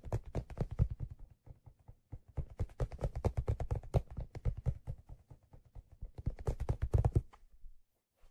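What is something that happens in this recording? Fingers tap rapidly on a leather object close to a microphone.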